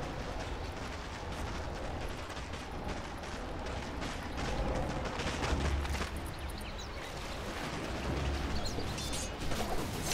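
Weapons clash in quick hits as game characters fight.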